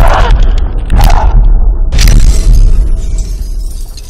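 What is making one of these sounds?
Glass shatters loudly with sharp crashes.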